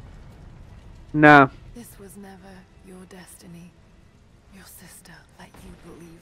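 A young woman speaks quietly and calmly, close by.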